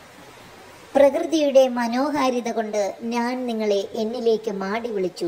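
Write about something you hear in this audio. A young girl speaks loudly and clearly, reciting close by.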